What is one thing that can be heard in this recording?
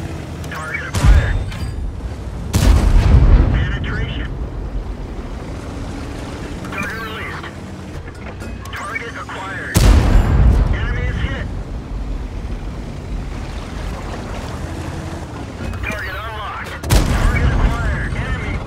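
Tank guns fire with loud booming blasts.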